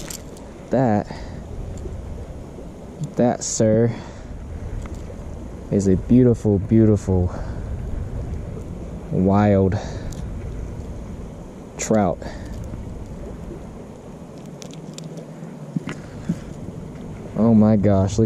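A shallow stream trickles and babbles steadily nearby.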